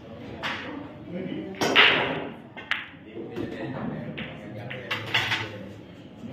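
Pool balls knock together on a table.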